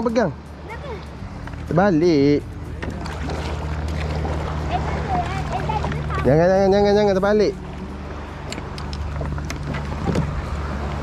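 Water laps against the hull of a small boat.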